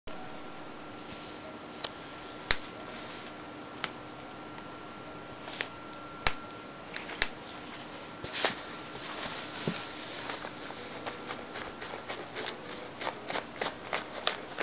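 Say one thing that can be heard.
A cat claws and rustles at a soft slipper close by.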